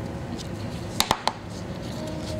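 A small tool clicks and knocks against a hard surface.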